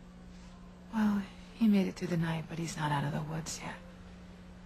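A woman speaks with emotion at close range.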